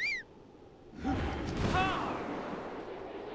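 A rush of wind swells as a glider opens.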